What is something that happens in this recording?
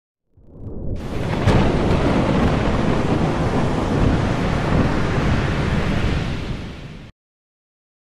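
Rough sea waves roar and crash.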